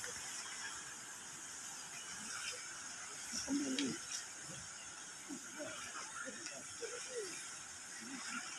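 A man speaks casually outdoors.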